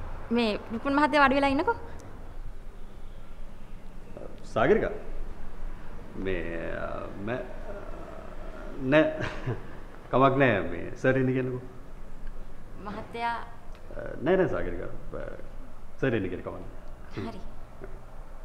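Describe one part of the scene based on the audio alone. A young woman speaks brightly, close by.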